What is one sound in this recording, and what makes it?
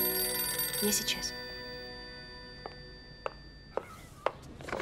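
A telephone rings.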